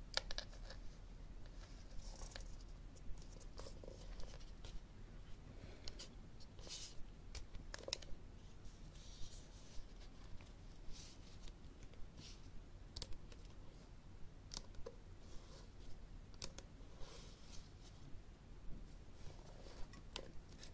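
Paper rustles softly as a book is handled.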